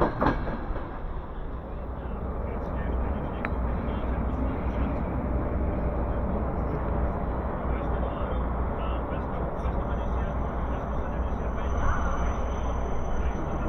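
A low, steady rumble fills the inside of a train carriage.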